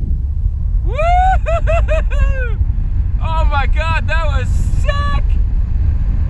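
An electronic flight instrument beeps in quick rising chirps.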